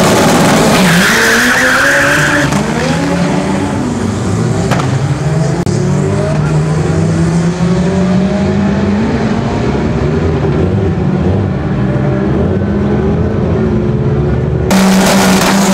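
A car accelerates hard and roars away down the track.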